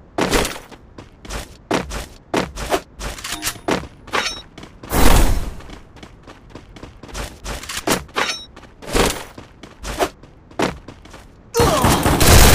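Footsteps tap quickly across wooden and stone floors.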